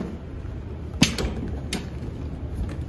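A metal door handle clanks as a hand pushes on it.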